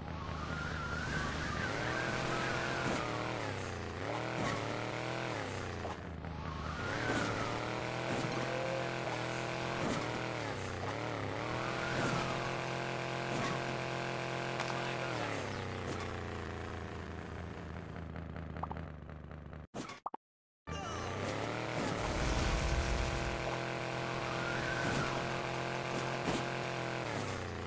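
A small motorbike engine revs up and down.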